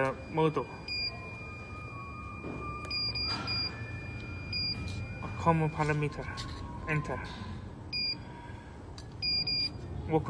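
A control panel beeps as its keys are pressed.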